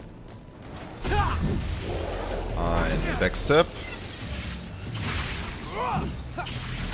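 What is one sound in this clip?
Blades slash and strike with sharp impacts.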